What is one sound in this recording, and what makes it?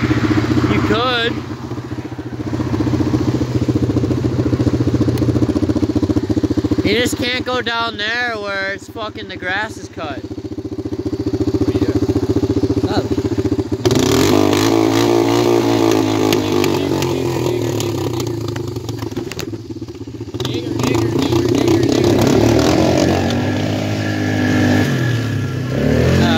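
An all-terrain vehicle's engine runs and revs as it drives over rough ground.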